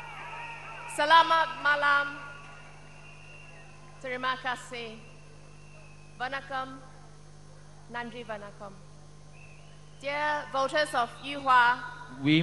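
A woman speaks into a microphone over loudspeakers, calmly and cheerfully.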